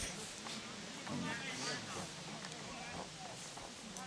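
Other men call out faintly in the distance.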